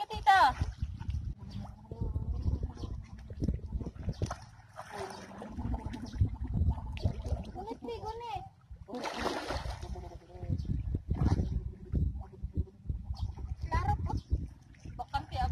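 Shallow water splashes as feet wade through it.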